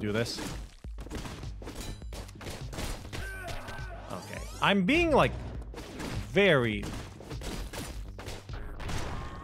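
A sword slashes quickly through the air.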